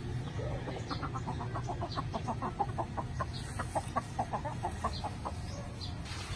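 A hen clucks rapidly and excitedly.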